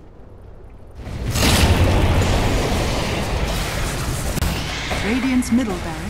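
Game weapons clash in combat.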